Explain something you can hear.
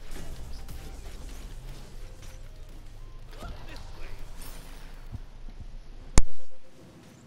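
Weapons clash and magic blasts crackle in a fight.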